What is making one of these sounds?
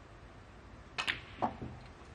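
A cue strikes a ball sharply.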